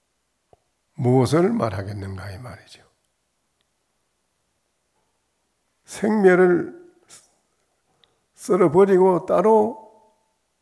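An elderly man speaks calmly into a microphone in bursts, with pauses between them.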